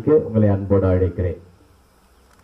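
A man speaks calmly into a microphone, heard over a loudspeaker.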